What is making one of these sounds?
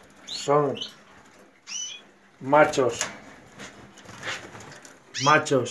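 Small birds chirp in short, high calls.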